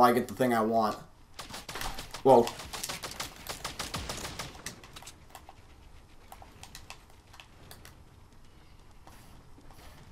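Video game building pieces clack into place.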